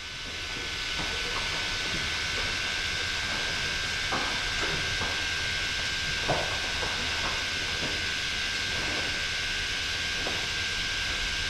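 Cows' hooves clop and scrape on a hard floor.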